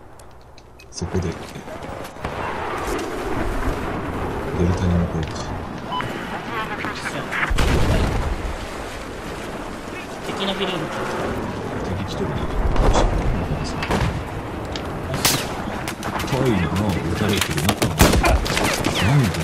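Gunshots crack and bang in rapid bursts.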